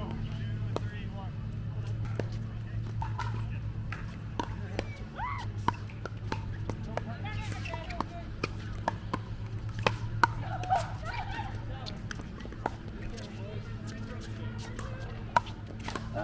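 Paddles hit a plastic ball with sharp hollow pops, again and again.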